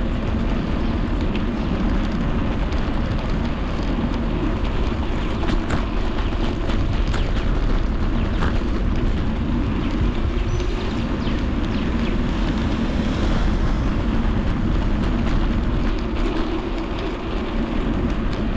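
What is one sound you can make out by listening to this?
Tyres roll steadily over pavement.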